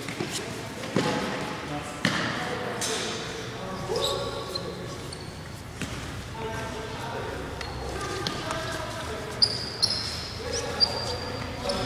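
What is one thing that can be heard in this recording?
A ball thuds against the floor and walls in a large echoing hall.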